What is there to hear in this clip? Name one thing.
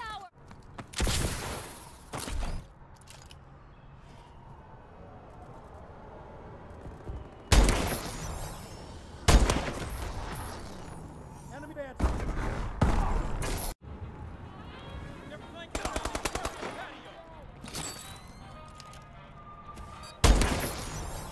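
A rifle fires single loud, sharp shots with a booming echo.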